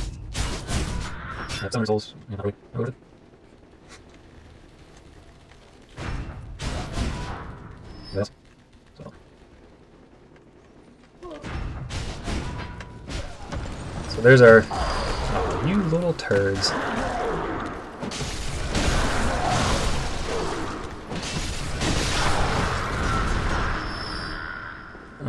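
Blades slash and strike in a fight, with heavy thuds.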